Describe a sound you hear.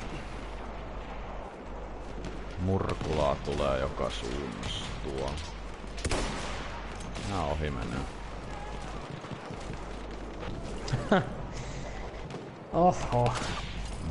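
Rifle shots crack nearby.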